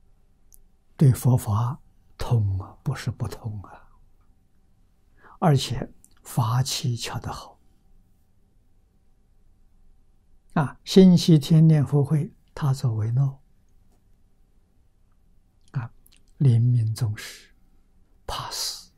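An elderly man speaks calmly and warmly into a close microphone, in short phrases with pauses.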